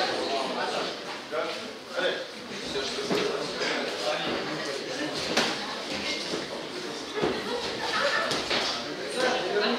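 Boxing gloves and kicks thud against bodies.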